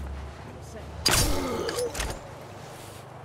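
A silenced pistol fires a single muffled shot.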